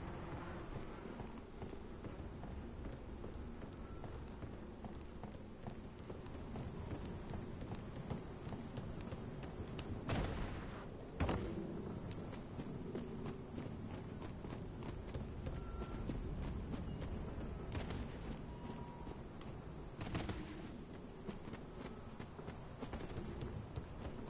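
Footsteps crunch steadily over hard ground.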